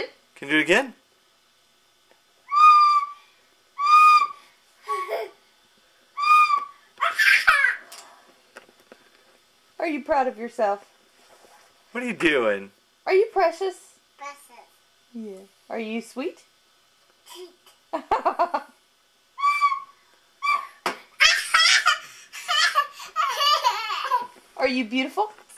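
A toddler girl babbles and squeals close by.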